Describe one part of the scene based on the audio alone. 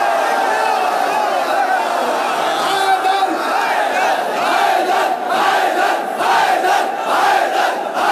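A man chants loudly and passionately through a microphone and loudspeakers.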